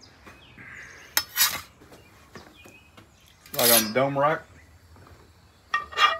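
A metal spatula scrapes across a griddle.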